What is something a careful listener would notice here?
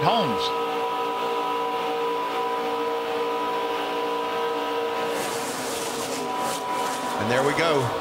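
Racing truck engines roar at high speed in a steady drone.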